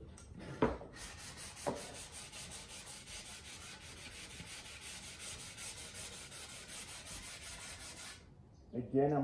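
A cloth rubs briskly over wood.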